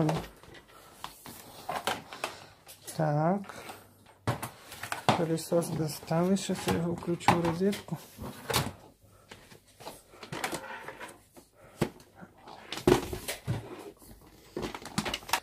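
A plastic vacuum cleaner hose knocks and rattles as it is handled.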